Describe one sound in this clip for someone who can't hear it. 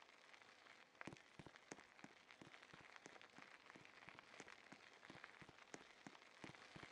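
Fingertips tap quickly on a glass touchscreen.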